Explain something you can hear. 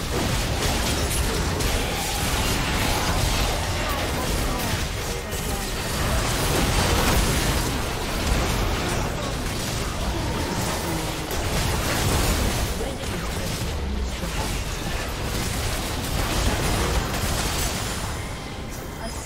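Game spells and weapon hits crackle and bang repeatedly during a chaotic battle.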